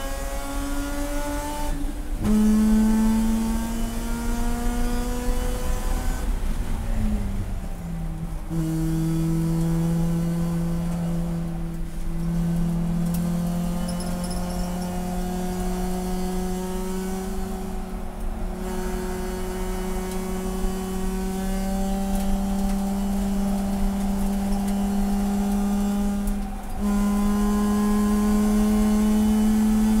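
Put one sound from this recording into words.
A race car engine roars loudly from inside the cabin, its pitch rising through each gear and dropping at the shifts.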